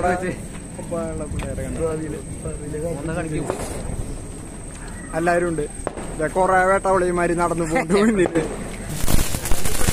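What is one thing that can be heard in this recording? Young men talk and laugh close by.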